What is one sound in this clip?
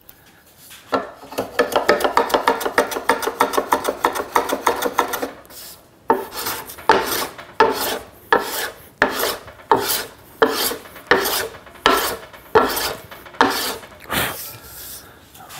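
A hand plane shaves wood in quick, rasping strokes.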